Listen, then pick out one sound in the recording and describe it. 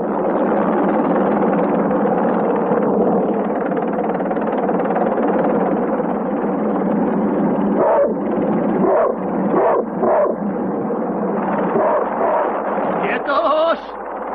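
A helicopter's rotor thumps and roars steadily.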